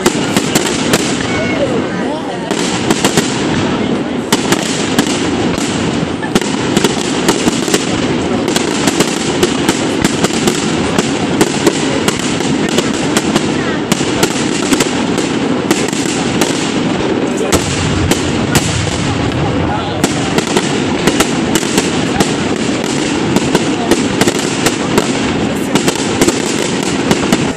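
Fireworks bang and crackle outdoors, one burst after another.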